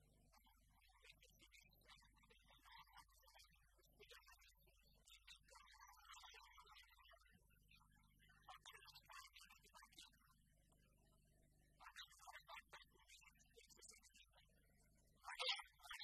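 A man speaks steadily through a microphone.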